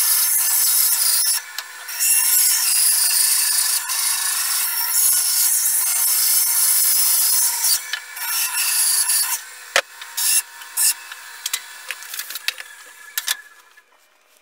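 A band saw hums and whines as it cuts through wood.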